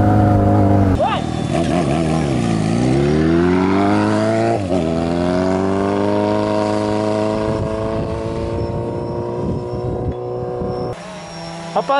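A motorcycle roars past, drops in pitch and fades into the distance.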